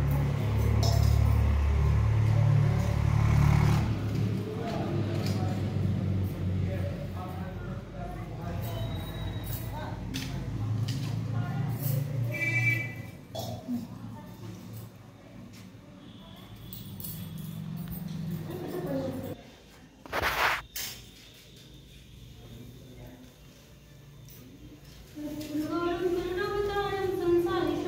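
Adult women talk softly nearby.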